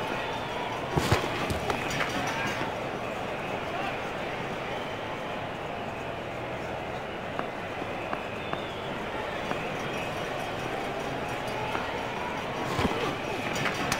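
A bat strikes a ball with a sharp knock.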